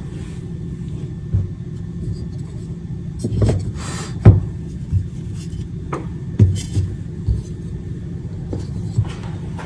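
Chalk blocks knock and scrape on a hard countertop.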